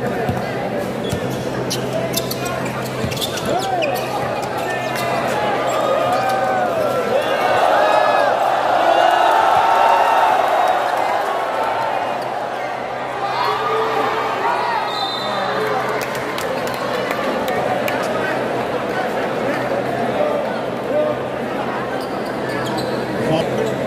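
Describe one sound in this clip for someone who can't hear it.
A large crowd cheers and shouts in an echoing indoor arena.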